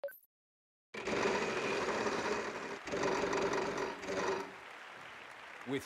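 A prize wheel spins with rapid ticking.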